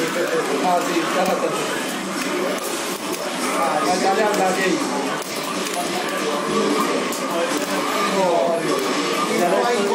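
Arcade buttons and joysticks clatter and click rapidly.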